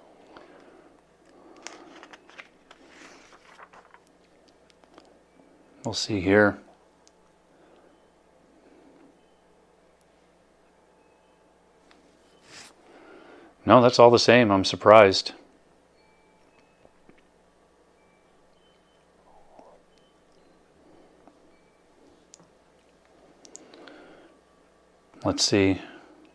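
A middle-aged man speaks calmly and quietly into a close microphone.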